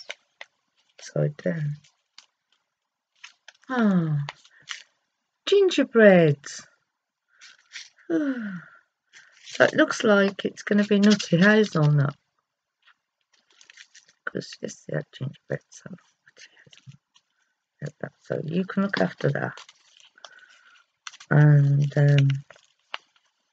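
An older woman speaks close up, with animation.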